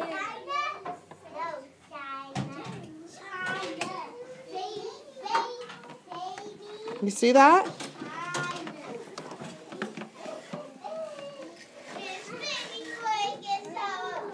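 Small plastic toys rattle and scrape in a plastic bin.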